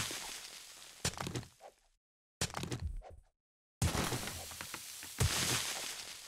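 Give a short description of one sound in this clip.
A pickaxe strikes rock with sharp, repeated knocks.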